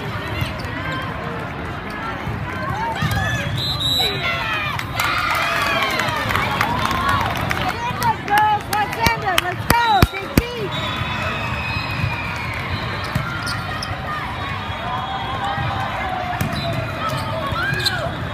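A crowd of young women and girls chatter and call out in a large echoing hall.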